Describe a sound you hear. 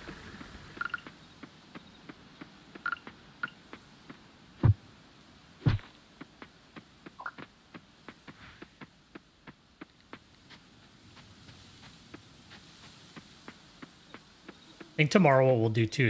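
Footsteps patter quickly along a dirt path.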